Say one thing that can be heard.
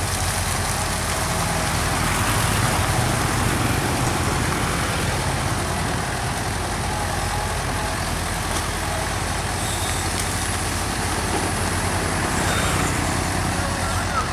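Water splashes and pours from an excavator bucket.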